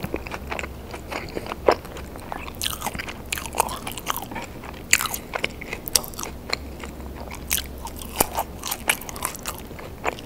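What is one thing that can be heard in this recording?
A woman chews crispy food with wet, smacking sounds, close to a microphone.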